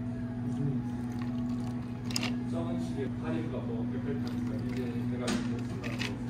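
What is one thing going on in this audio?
Espresso pours and splashes over ice.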